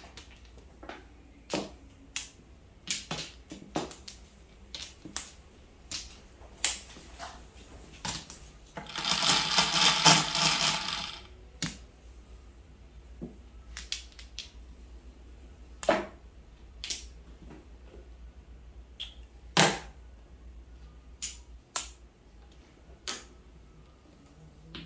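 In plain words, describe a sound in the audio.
Plastic tiles click and clack against each other on a table.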